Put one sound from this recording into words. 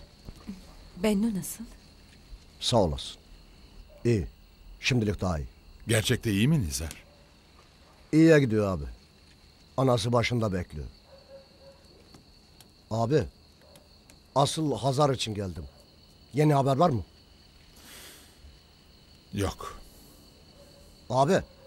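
A middle-aged man speaks in a low, tense voice close by.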